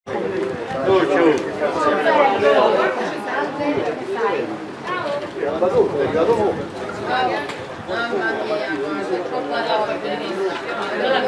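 A group of young men shout and chant together outdoors.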